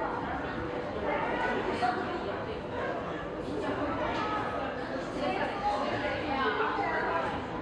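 A crowd of men and women chatter nearby in a large, echoing space.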